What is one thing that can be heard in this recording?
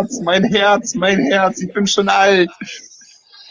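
A man talks excitedly over an online call.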